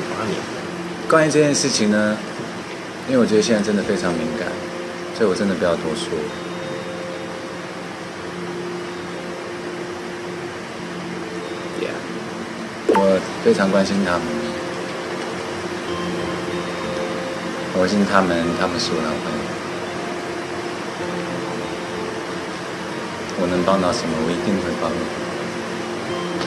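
A young man speaks quietly and haltingly, close by, with long pauses.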